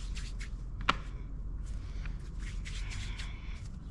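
Hands pat and press soft dough.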